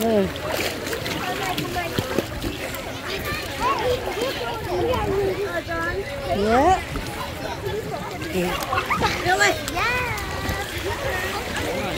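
Water splashes and laps, outdoors.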